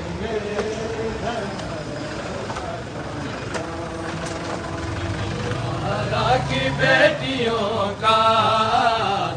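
A crowd of men chants together loudly outdoors.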